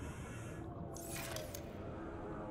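A short whoosh sounds as a menu opens.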